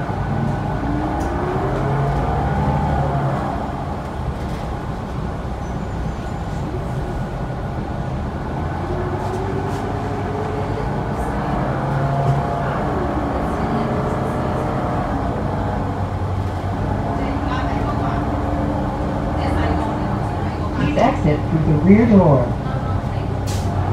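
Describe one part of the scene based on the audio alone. A bus engine hums and whines, rising and falling in pitch as the bus drives.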